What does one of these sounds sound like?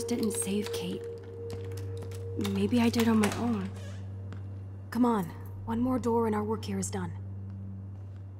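A young woman speaks softly and thoughtfully.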